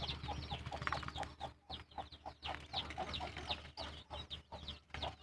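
Young chickens chirp and cheep nearby.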